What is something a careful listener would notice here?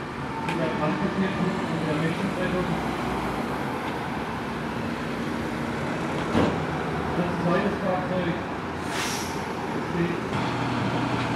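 A car engine hums as the car drives slowly past.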